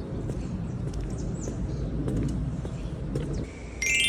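Footsteps tap on paving stones outdoors.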